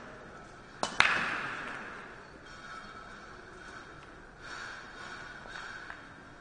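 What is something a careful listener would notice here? Pool balls clatter and knock against each other as they scatter and roll across the table.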